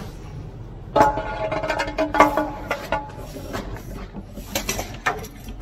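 A metal pole knocks and clanks against a concrete wall.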